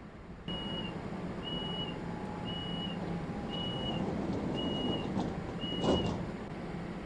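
A door warning beeps in short even pulses.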